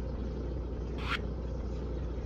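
A game menu makes a short click.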